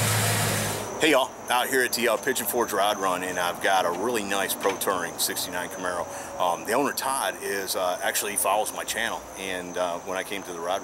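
A middle-aged man talks with animation close to the microphone, outdoors.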